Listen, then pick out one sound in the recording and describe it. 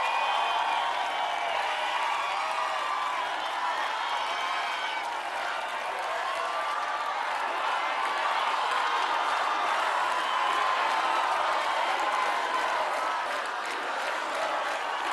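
A large crowd cheers and shouts.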